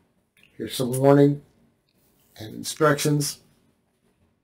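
A middle-aged man speaks slowly and expressively into a close microphone.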